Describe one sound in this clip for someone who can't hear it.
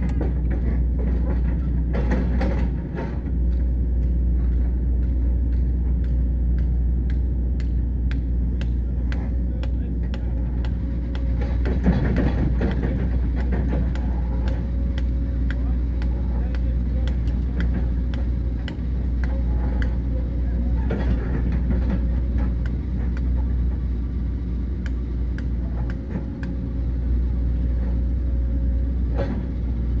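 A digger engine rumbles steadily nearby.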